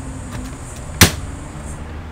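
A rivet gun snaps a rivet with a sharp crack.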